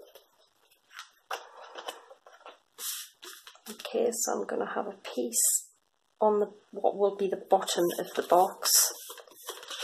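Stiff paper rustles and slides as it is handled.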